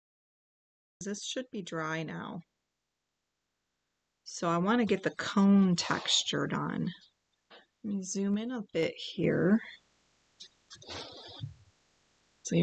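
A woman talks calmly and clearly into a microphone.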